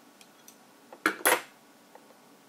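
A small plastic connector clicks into place.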